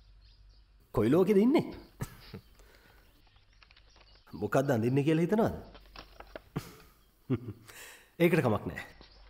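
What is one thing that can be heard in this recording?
A man speaks gently and playfully, close by.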